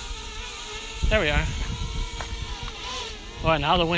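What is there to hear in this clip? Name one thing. A man talks outdoors at a distance.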